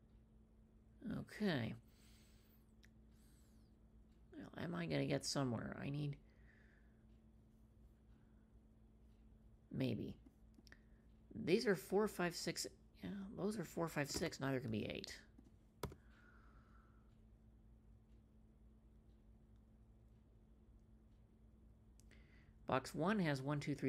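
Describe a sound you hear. A young woman talks calmly and close to a microphone, in short bursts.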